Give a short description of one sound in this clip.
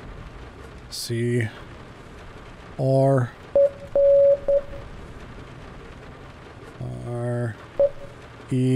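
A man speaks close to a microphone.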